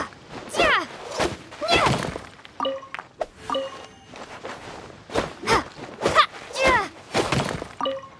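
A blade swishes and clangs against rock.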